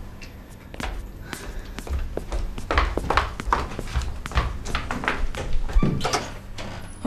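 Footsteps thud across a floor.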